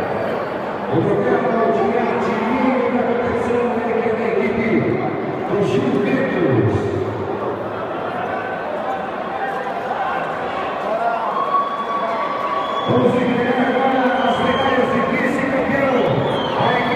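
A crowd chatters in a large echoing hall.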